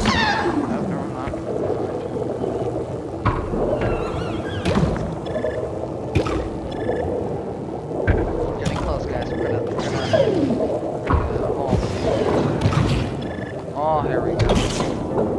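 Small creatures squeak and chirp in quick bursts.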